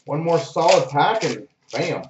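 A foil wrapper crinkles in someone's hands.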